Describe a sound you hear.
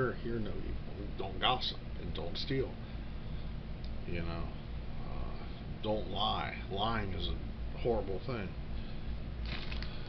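A middle-aged man talks calmly close to the microphone.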